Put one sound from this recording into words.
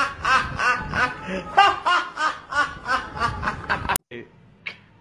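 A man sings loudly and with feeling, close by.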